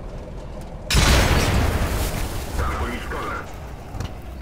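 A large explosion roars and crackles.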